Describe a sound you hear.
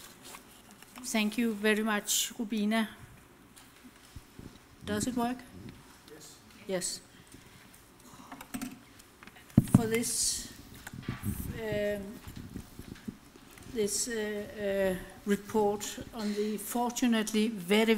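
An elderly woman speaks calmly into a microphone in an echoing hall.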